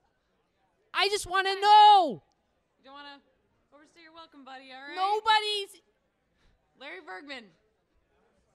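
A young man sings expressively into a microphone.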